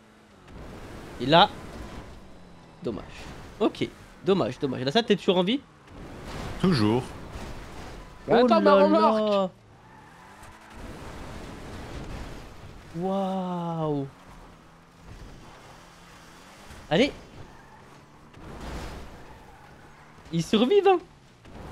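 A car thumps and crashes as it lands and hits obstacles.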